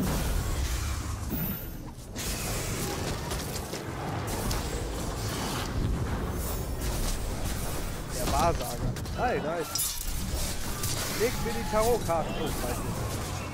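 Blades clash and thud in a chaotic melee battle.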